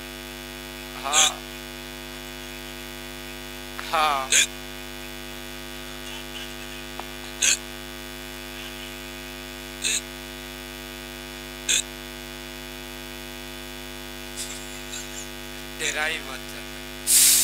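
A young man speaks loudly in short bursts.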